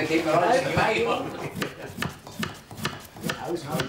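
A knife slices through raw potatoes on a board.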